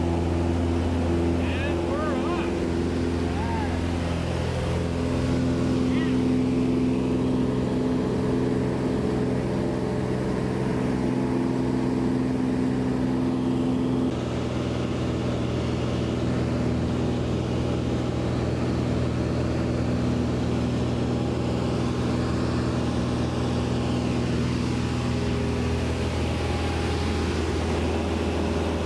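A small plane's propeller engine drones loudly and steadily inside the cabin.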